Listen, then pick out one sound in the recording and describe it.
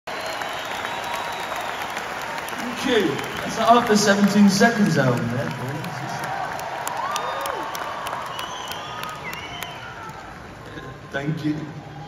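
A large crowd cheers loudly in a big echoing hall.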